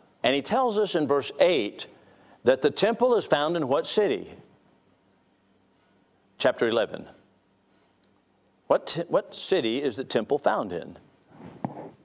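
A middle-aged man speaks calmly through a microphone in a large room, with pauses.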